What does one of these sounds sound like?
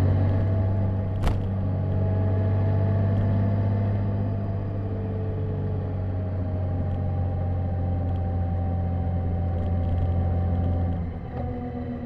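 A motorcycle engine hums steadily at cruising speed, dropping slightly near the end.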